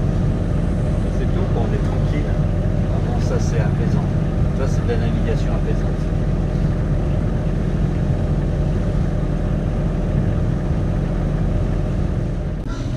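Strong wind rumbles and buffets steadily throughout.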